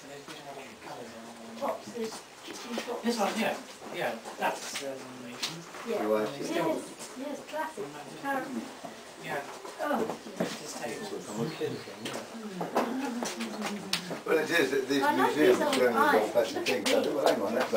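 A middle-aged woman talks casually nearby.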